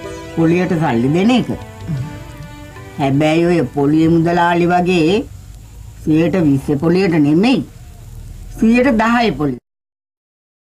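A middle-aged woman talks with animation, close by.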